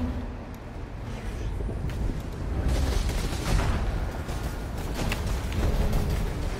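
Video game battle effects crash and rumble.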